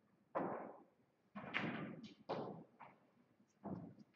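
Pool balls click together and roll across the table.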